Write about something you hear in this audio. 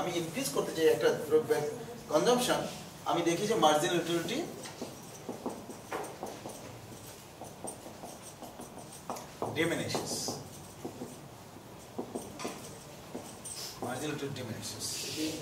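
A man lectures calmly and clearly.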